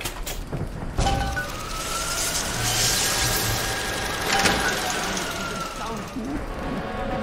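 A mechanical device whirs and hums, rising and then falling in pitch.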